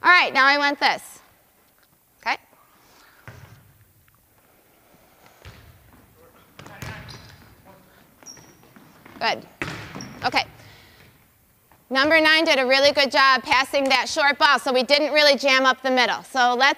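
A woman speaks loudly with animation in a large echoing gym.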